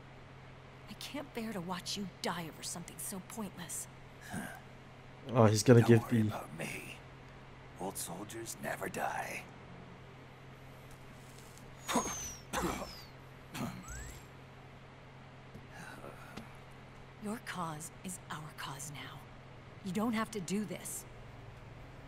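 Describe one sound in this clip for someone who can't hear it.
A young woman speaks softly and earnestly.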